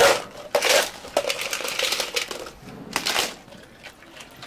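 Ice cubes clatter into a plastic cup.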